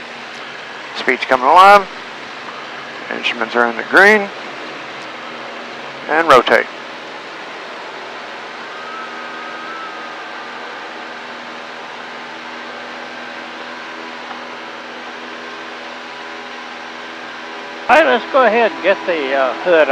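A man speaks loudly over the engine in short bursts.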